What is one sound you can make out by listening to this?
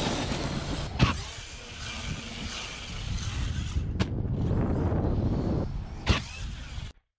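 A remote-control car lands with a thud on dirt.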